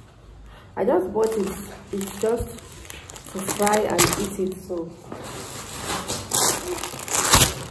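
A plastic wrapper crinkles in hands.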